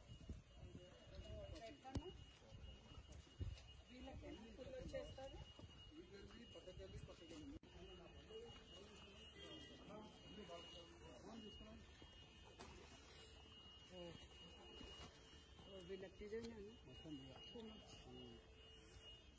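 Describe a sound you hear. Several men talk quietly at a distance, outdoors.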